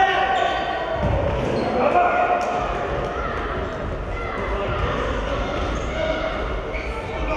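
A handball bounces on the floor.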